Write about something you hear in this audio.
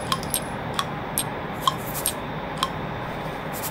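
Metal clicks sound as shells are loaded into a revolver.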